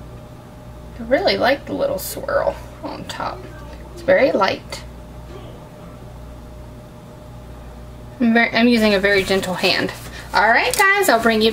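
A woman talks close by, calmly.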